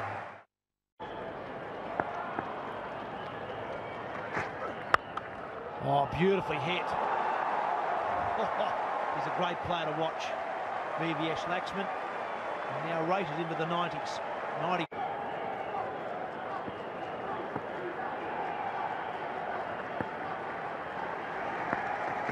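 A large crowd roars and cheers outdoors.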